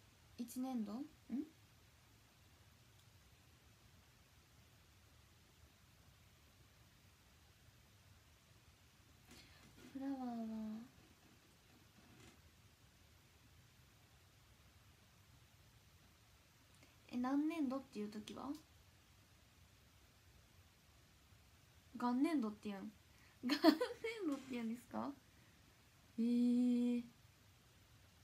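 A young woman speaks calmly in short bursts, close to a microphone.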